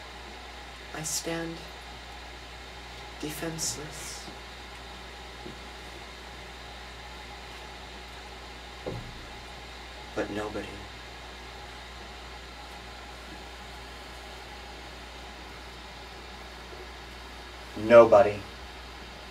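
A man speaks in short, separate bursts.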